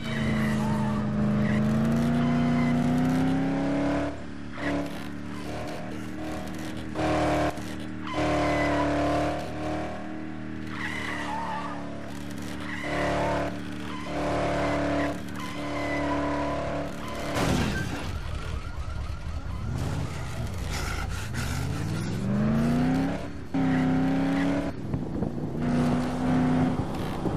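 A car engine revs and whines, rising and falling as the car speeds along.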